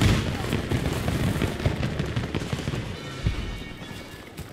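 Explosions rumble and boom nearby.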